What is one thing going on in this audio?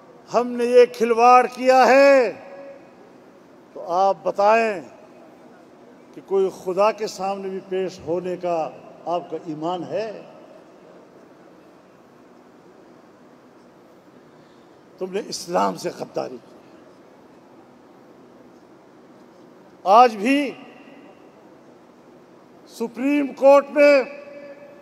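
An elderly man speaks forcefully into a microphone, heard through loudspeakers with pauses between phrases.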